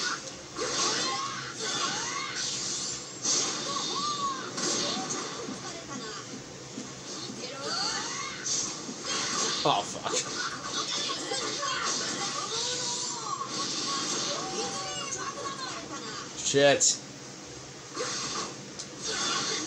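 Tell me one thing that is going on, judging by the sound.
Energy attacks whoosh loudly.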